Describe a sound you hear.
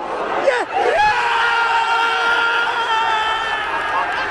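A crowd erupts in loud cheering.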